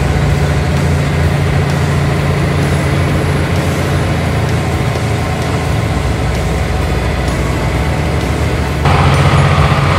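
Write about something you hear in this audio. A river rushes and ripples over shallow rapids.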